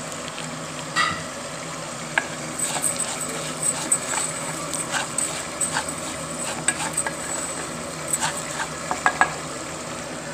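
A wooden spoon scrapes and clicks against a pan as rice is stirred.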